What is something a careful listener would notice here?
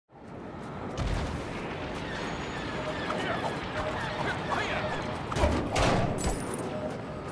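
An object bursts apart with loud crashing blows.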